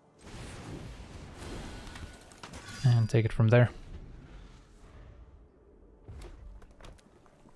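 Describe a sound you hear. Digital game sound effects whoosh and chime.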